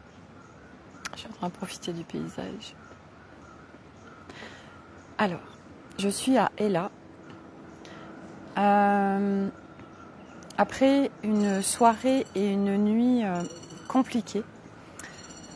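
A middle-aged woman talks calmly close to the microphone, outdoors.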